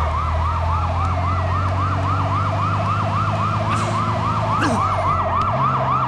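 A police siren wails rapidly and continuously nearby.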